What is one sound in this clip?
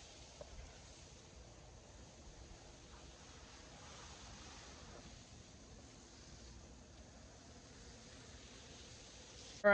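A hose sprays water onto the ground with a steady, soft hiss.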